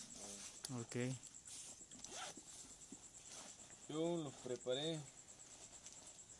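Fabric rustles as a vest is handled.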